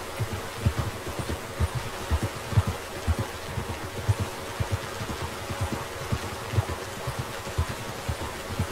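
A horse's hooves thud steadily on soft grass.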